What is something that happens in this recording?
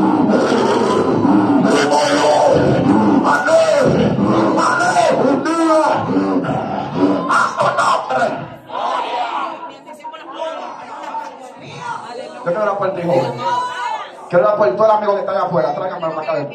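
A crowd of men and women pray loudly and cry out together in an echoing hall.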